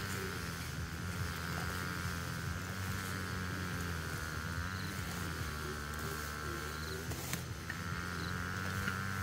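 Grass rustles and tears as weeds are pulled by hand.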